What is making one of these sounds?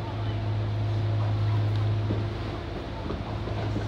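An oncoming train passes close by.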